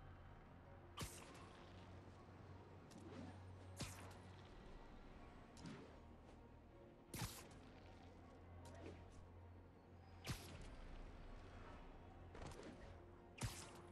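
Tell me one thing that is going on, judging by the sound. Sharp whipping snaps ring out again and again as web lines shoot out.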